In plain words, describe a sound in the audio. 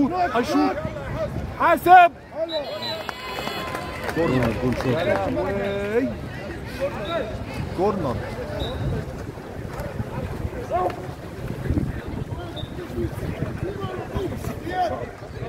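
Swimmers splash and kick through the water of a pool.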